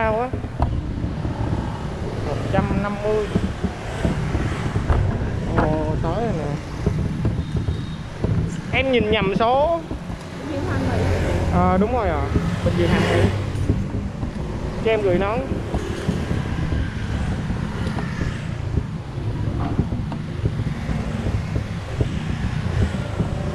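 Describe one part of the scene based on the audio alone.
A motor scooter engine hums steadily while riding.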